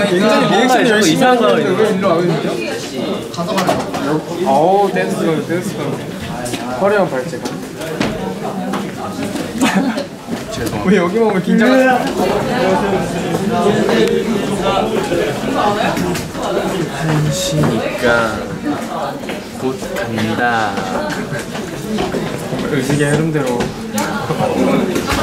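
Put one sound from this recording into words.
Young men talk and laugh with animation, close by.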